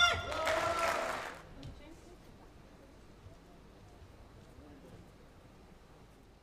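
A racket strikes a shuttlecock with sharp taps during a rally.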